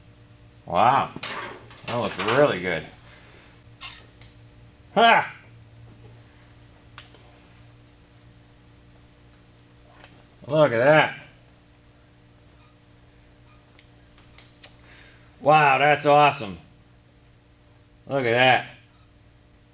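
A man speaks calmly close by, in short phrases with pauses.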